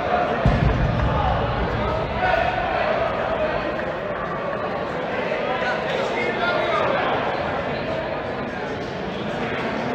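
Voices of players call out and chatter in a large echoing hall.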